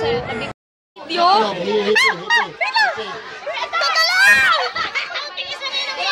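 Young children chatter and call out excitedly nearby.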